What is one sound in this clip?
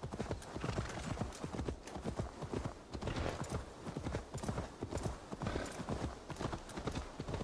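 Horse hooves thud steadily on a dirt path.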